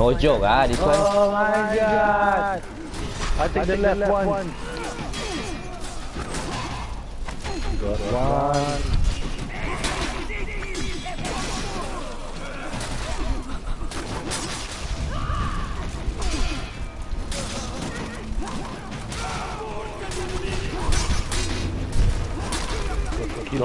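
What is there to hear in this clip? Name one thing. Metal swords clash and clang again and again.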